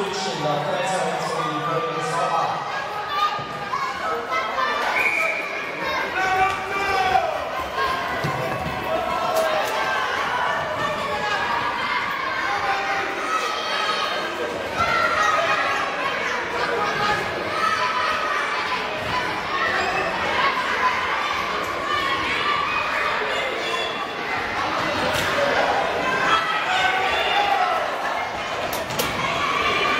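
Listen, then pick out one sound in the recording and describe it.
A crowd of children shouts and cheers, heard through a large echoing hall.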